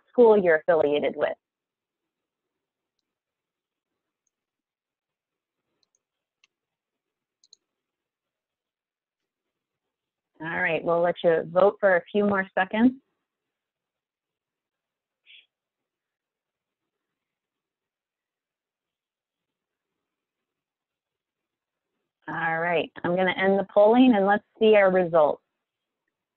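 A woman speaks calmly over an online call, in short bursts with long pauses.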